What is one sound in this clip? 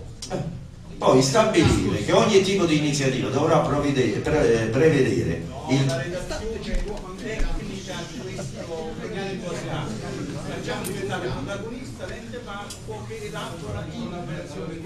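Several men talk over one another loudly, close by.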